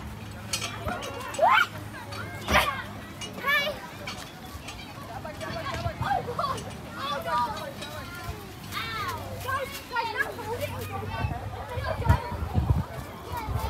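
Young children shout and squeal nearby while playing outdoors.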